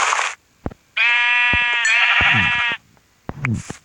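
A sheep bleats loudly twice.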